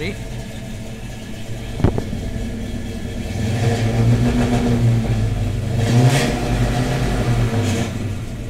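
A car engine idles with a deep, steady rumble, swelling slightly at times.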